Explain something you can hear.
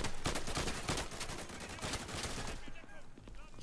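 A shotgun is loaded with metallic clicks.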